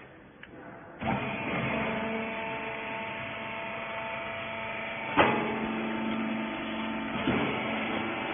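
A machine hums steadily as it presses.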